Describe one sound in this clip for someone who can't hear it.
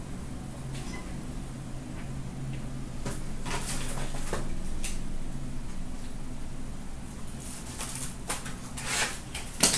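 Cardboard boxes slide and tap against each other as they are handled.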